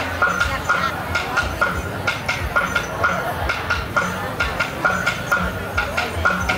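Lively folk music with a quick, steady beat plays loudly over loudspeakers.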